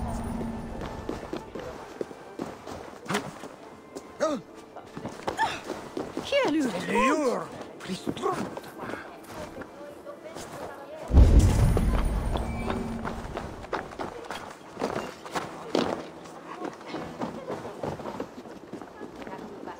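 Footsteps run and thud over stone, wood and roof tiles.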